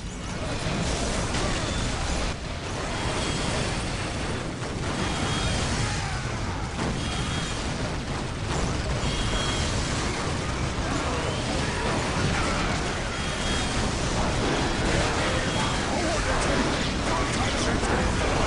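Rapid gunfire crackles throughout a battle.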